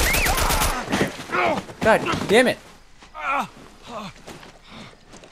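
A man gasps and groans in pain.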